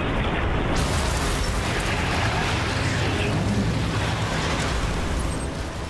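A grenade explodes with a heavy blast.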